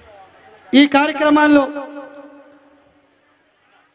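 A man shouts loudly into a microphone over loudspeakers, with an echo trailing off.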